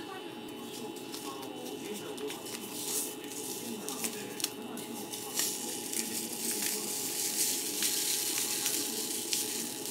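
A plastic packet crinkles and rustles as it is torn and squeezed.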